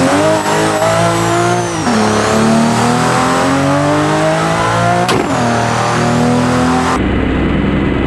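A sports car engine revs hard, its pitch climbing through the gears with brief drops at each shift.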